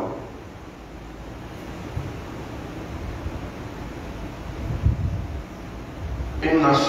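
A man preaches with animation in a large echoing hall.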